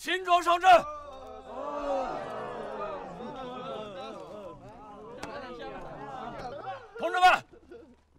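A group of men clamour over one another.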